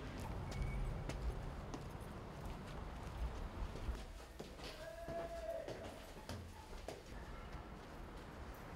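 Footsteps echo in a large empty hall.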